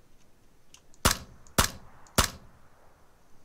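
A rifle fires three loud shots in quick succession.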